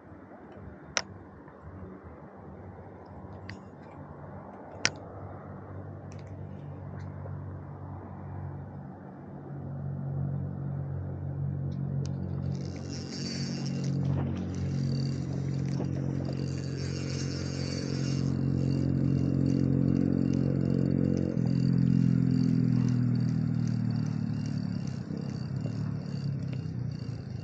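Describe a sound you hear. A fishing reel clicks as its handle is cranked.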